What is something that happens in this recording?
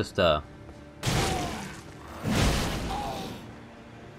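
A heavy blade whooshes through the air and strikes.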